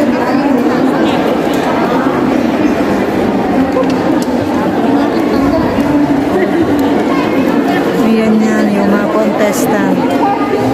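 A crowd of people talk and chatter in a large echoing hall.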